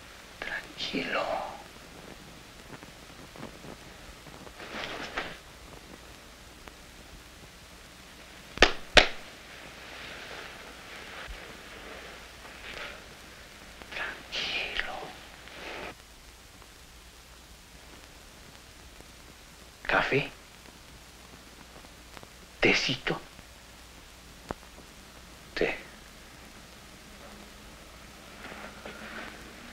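A young man speaks in reply.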